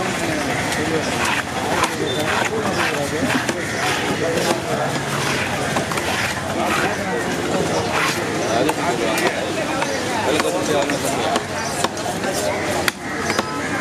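Several men talk loudly nearby.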